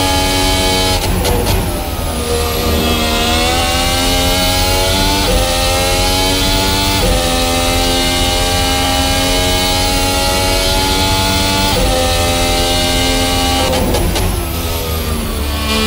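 The racing car engine revs down under braking and crackles.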